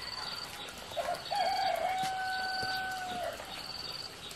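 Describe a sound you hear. A rooster crows nearby.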